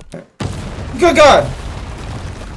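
A man exclaims loudly into a close microphone.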